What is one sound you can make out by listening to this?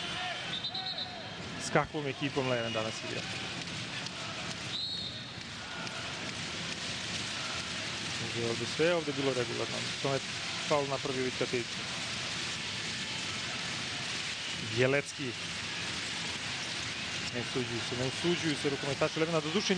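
A large crowd cheers and chants in a big echoing hall.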